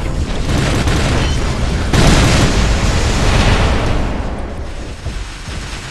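Energy beams crackle and explode loudly.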